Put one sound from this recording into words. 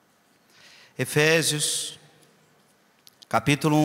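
A man speaks slowly and calmly into a microphone, in a large echoing hall.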